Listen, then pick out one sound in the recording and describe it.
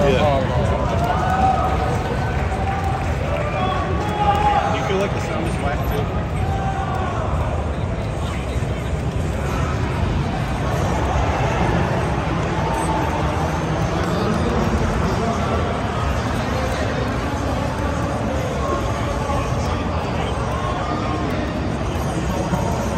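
A crowd of people chatters all around in a large, busy hall.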